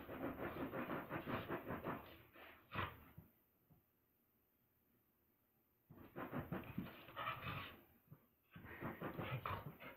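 Dogs growl and snarl playfully close by.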